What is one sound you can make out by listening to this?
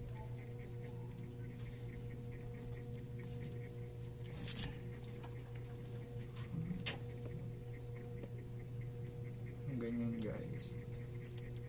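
Plastic tape crinkles as a battery pack is handled.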